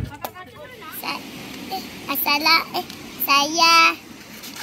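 A young boy speaks excitedly, close by.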